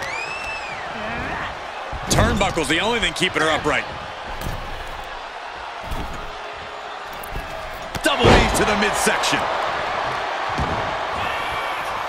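A large crowd cheers steadily.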